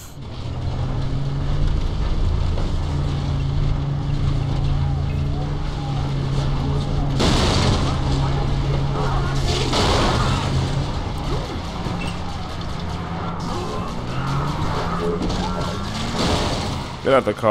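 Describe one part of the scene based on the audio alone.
A vehicle engine hums steadily while driving over rough ground.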